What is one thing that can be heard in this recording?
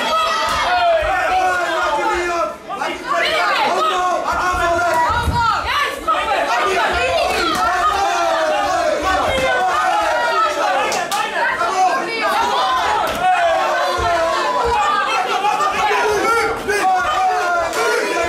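Gloved punches and kicks thud against bodies.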